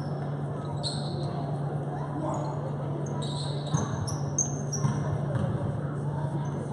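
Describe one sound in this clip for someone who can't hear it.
A crowd chatters quietly in a large echoing gym.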